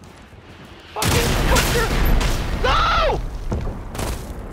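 A loud explosion booms close by and rumbles away.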